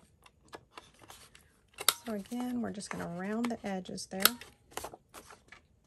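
A paper punch clicks as it is pressed.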